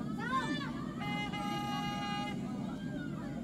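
A referee's whistle blows one long steady blast outdoors.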